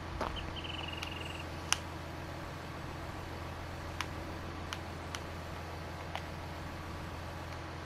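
A hydraulic arm whines as it moves.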